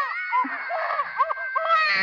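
A baby cries loudly close by.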